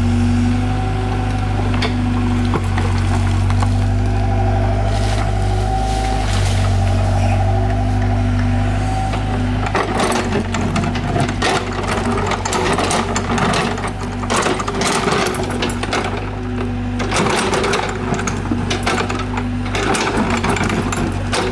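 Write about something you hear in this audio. Rocks and dirt scrape and clatter against an excavator bucket.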